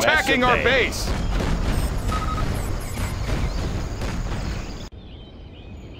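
Explosions boom and rumble amid gunfire.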